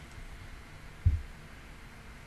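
A hand bumps against a microphone with a dull thud.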